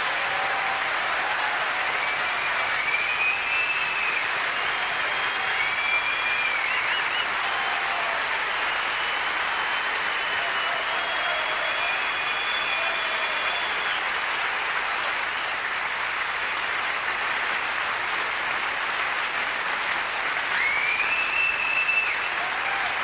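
A large crowd whistles loudly now and then.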